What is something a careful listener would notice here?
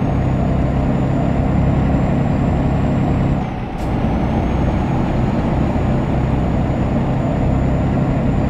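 A truck engine drones steadily, dipping briefly as it changes gear.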